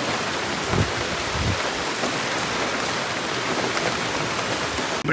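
Wind gusts through palm leaves.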